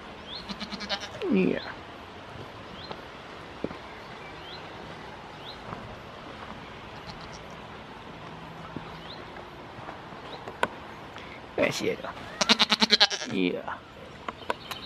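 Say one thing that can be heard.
A goat bleats close by.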